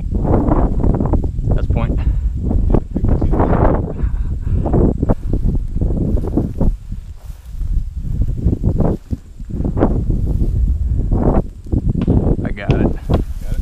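Tall grass swishes and rustles as someone walks through it.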